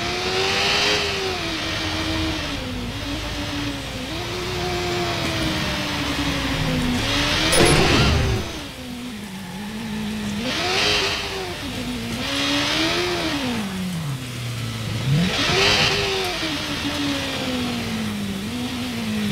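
A motorcycle engine revs up and down as it rides.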